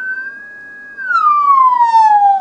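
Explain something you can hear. An electronic tone slides smoothly downward in pitch.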